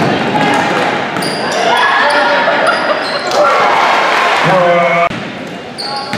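Young women players call out to each other across the court.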